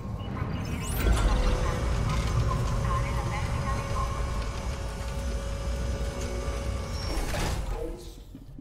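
An elevator hums steadily as it moves, then stops.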